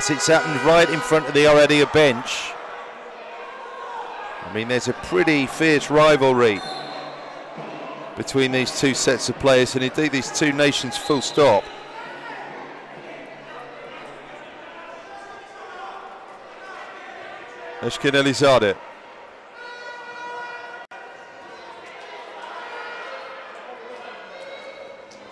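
A crowd murmurs in a large open arena.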